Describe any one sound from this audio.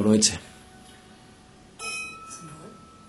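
Wine glasses clink together once.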